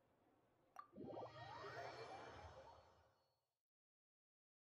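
A bright, shimmering whoosh with rising chimes plays.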